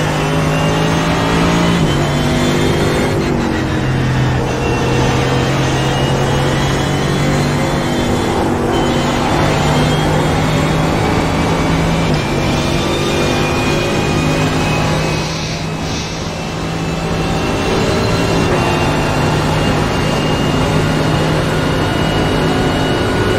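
Tyres hum and rumble on the track.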